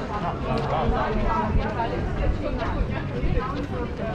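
A man's footsteps tap on stone paving nearby.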